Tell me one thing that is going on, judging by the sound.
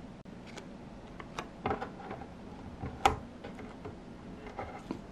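Small plastic parts click and tap against each other as they are fitted together.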